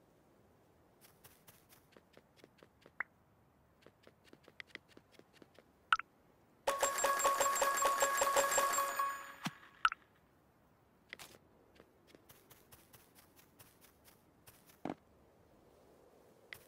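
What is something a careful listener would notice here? Quick light footsteps patter on a hard floor.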